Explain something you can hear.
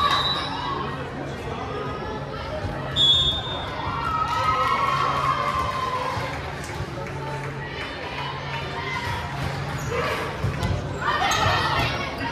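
Young women's voices chatter and call out across a large echoing gym.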